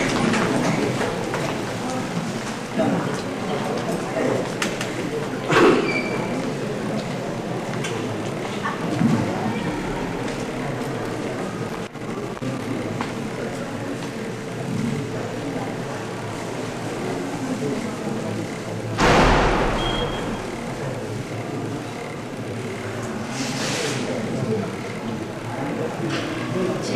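A crowd of adults murmurs quietly in a large echoing hall.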